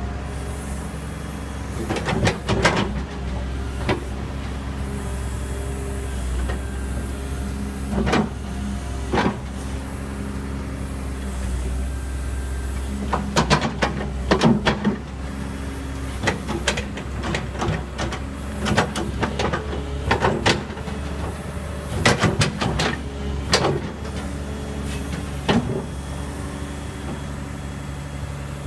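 An excavator's diesel engine rumbles steadily close by.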